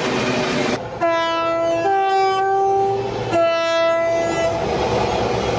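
A diesel freight locomotive sounds a two-tone horn.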